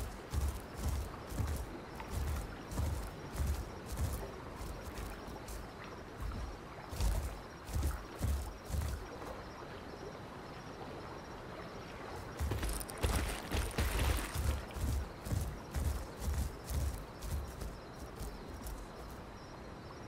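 Heavy footsteps thud steadily on soft forest ground.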